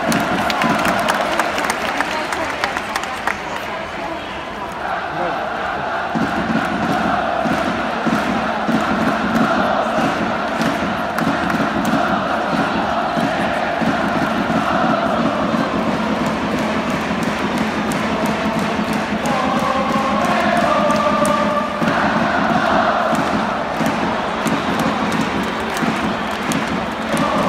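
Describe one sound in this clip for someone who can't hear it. A large stadium crowd cheers and chants throughout, echoing across an open arena.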